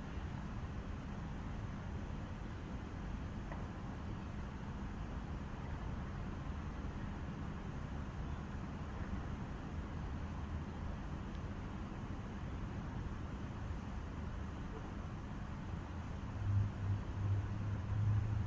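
Wind rumbles outdoors.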